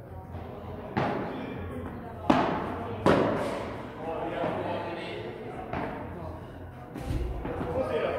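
A padel ball is struck sharply by paddles in an echoing hall.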